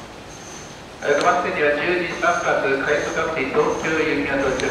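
Train wheels squeal on a curve.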